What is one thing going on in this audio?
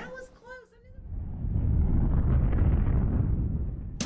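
A rocket engine roars loudly as it lifts off.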